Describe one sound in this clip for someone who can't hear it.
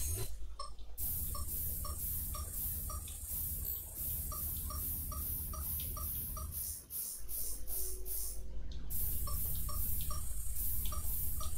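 Short electronic beeps repeat at a steady, quick pace.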